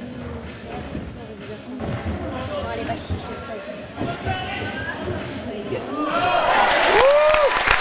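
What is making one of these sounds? A gymnast's feet thud on a springy track while tumbling.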